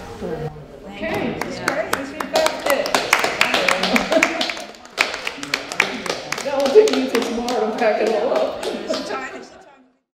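People cheer and call out during the applause.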